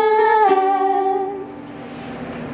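Two young women sing a held note together through microphones.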